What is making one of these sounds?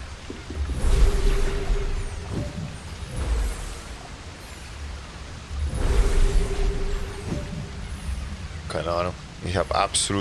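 Waterfalls rush into a pool.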